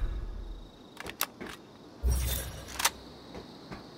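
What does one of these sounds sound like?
A rifle magazine clicks out and snaps back in.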